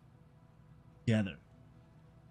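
A man speaks briefly in a low voice.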